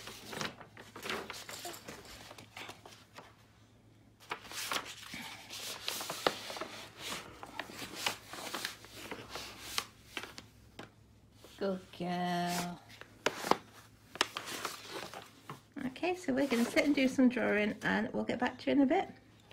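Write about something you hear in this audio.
Paper crinkles and rustles close by.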